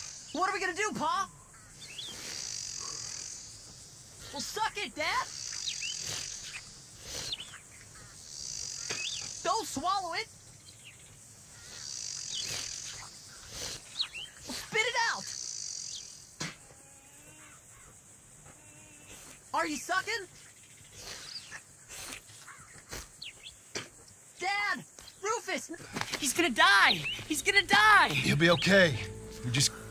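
A boy pleads and cries out in distress, close by.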